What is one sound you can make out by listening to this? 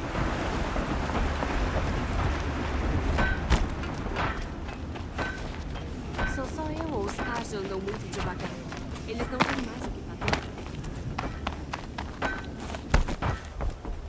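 Footsteps run over sand and wood.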